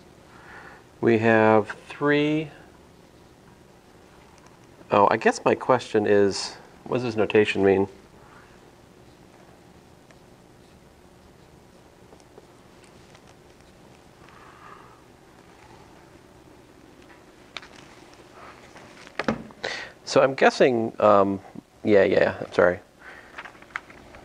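A man speaks calmly and clearly nearby.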